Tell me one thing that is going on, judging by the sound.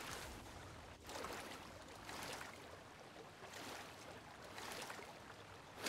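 Footsteps rustle on grass at a steady walking pace.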